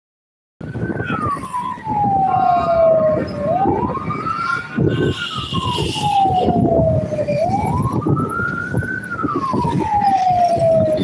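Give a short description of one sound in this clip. Car tyres rumble on the road.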